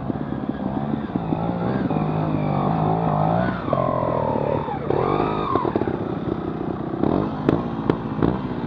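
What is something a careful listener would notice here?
A second motorcycle engine revs loudly as it climbs a slope nearby.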